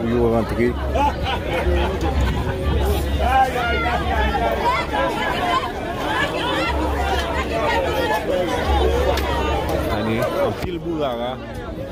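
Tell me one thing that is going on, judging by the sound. A crowd of men and women talk and call out at once nearby outdoors.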